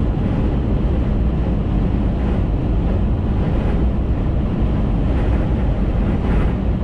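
A car hums steadily along a highway, with a low rumble of tyres on the road.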